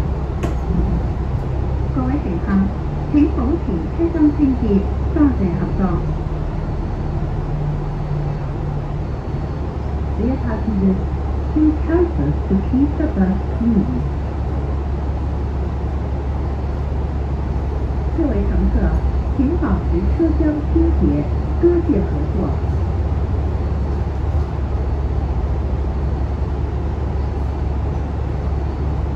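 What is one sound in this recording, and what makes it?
A bus engine idles with a low, steady rumble.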